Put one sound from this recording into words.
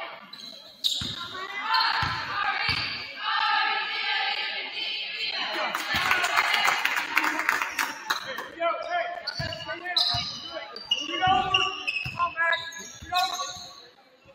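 A basketball thuds as it bounces on the court.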